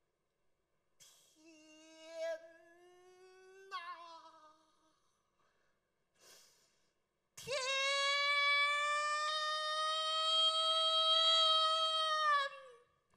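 A man cries out in a long, quivering sung wail.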